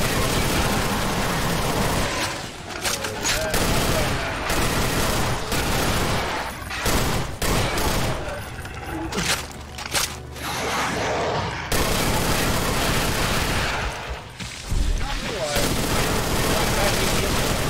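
Video game gunfire blasts in rapid bursts.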